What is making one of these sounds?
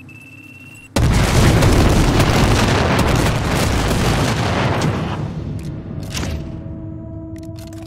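A huge explosion roars with a loud, rushing blast.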